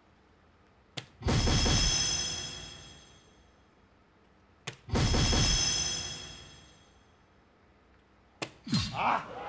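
A dart thuds into an electronic dartboard.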